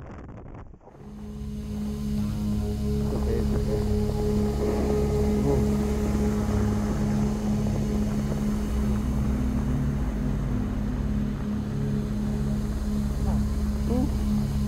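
An avalanche roars down a mountainside with a deep, rumbling thunder.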